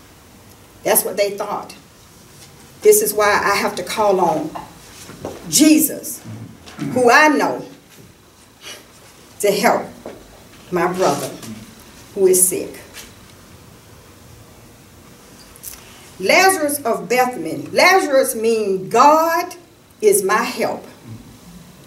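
An elderly woman speaks slowly and deliberately, with pauses.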